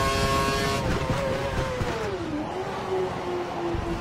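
A Formula One V8 engine drops in pitch as the car brakes for a corner.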